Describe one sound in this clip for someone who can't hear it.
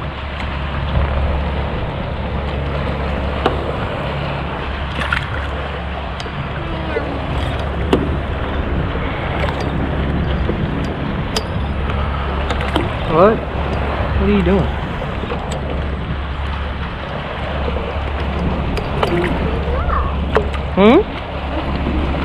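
A fishing line splashes in the water as a bait trap is pulled up.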